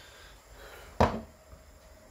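A glass bottle is set down with a knock.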